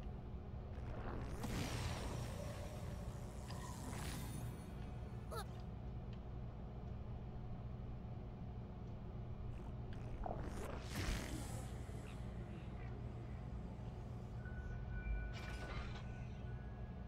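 A game's whooshing sound effects sweep by now and then.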